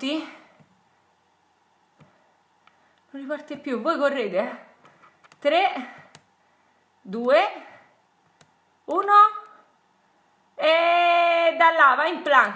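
A young woman speaks close to a microphone with animation, in short bursts with pauses.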